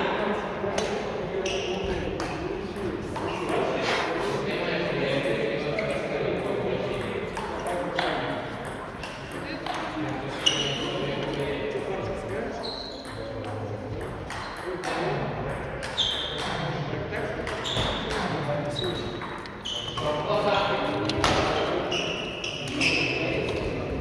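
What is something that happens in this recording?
Badminton rackets hit a shuttlecock with sharp pops.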